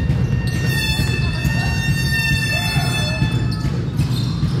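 Sneakers squeak sharply on a hard court in an echoing hall.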